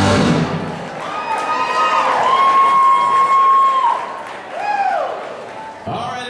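An electric guitar plays long, bending lead notes.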